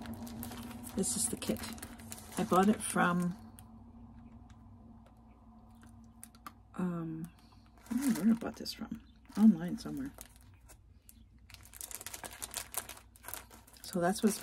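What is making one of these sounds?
A plastic package crinkles as it is handled.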